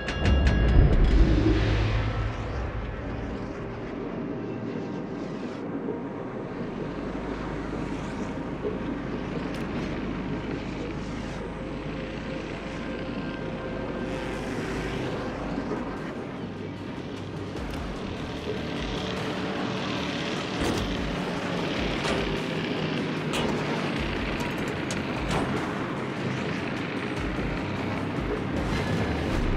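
A ship's bow wave churns and rushes through the sea.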